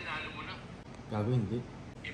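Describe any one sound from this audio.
A man speaks briefly and calmly up close.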